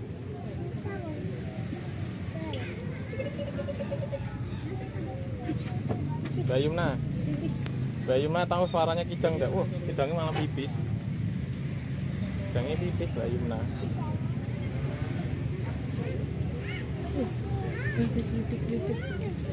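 Young children talk and squeal excitedly close by.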